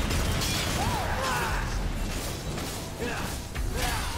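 A sword slashes and clangs against a creature.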